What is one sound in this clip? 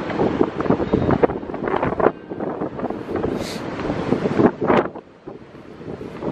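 Wind gusts loudly outdoors, buffeting in uneven bursts.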